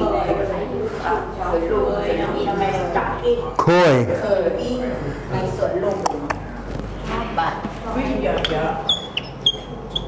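An elderly man lectures calmly and clearly, close by.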